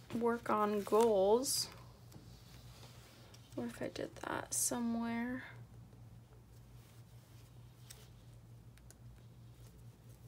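A sticker peels softly off a backing sheet.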